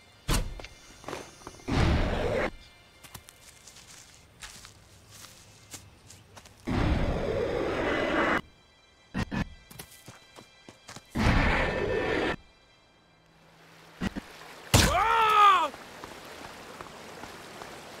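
Footsteps run over grass and rock.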